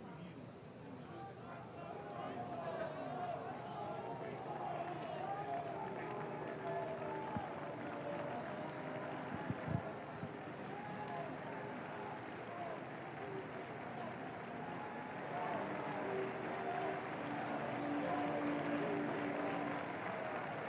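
A large outdoor crowd sings together.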